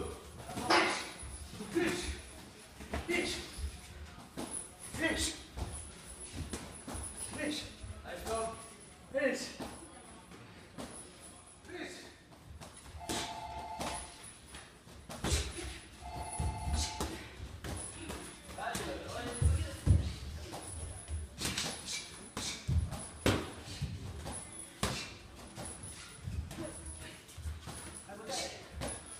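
Gloved punches thud in a sparring bout.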